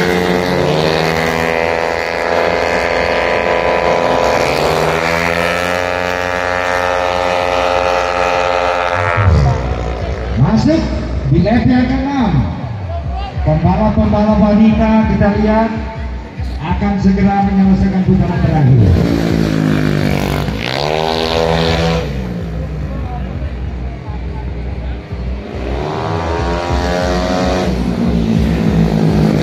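Racing motorcycle engines rev high and roar past.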